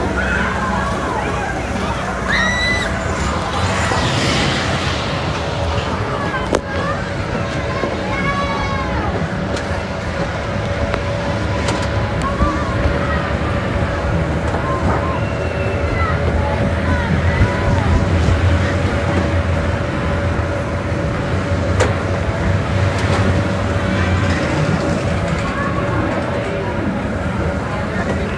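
A steady machine hum drones from the ride.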